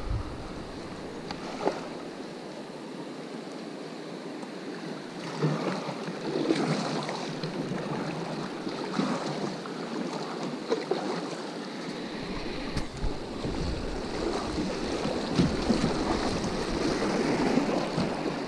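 A paddle dips and splashes in the water.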